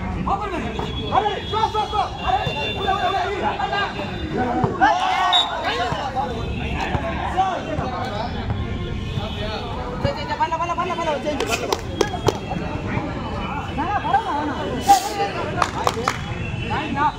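A volleyball is struck with a hand with a sharp slap.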